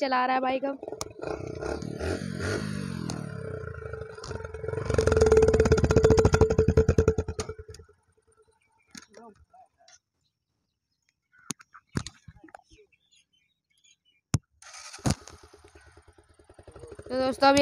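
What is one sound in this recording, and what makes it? A motorcycle engine sputters and revs loudly.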